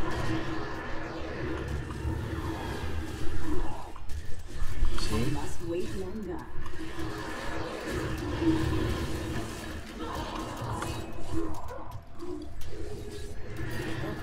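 Magic blasts crackle and boom in a fast fight.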